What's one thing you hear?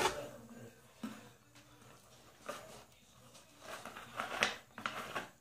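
A plastic bottle crinkles as it is handled.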